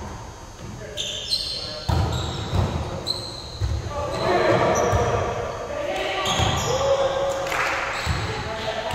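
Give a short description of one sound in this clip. Sneakers squeak on a wooden gym floor.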